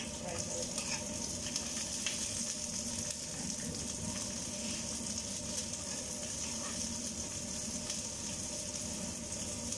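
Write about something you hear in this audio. A utensil scrapes and clinks against a frying pan.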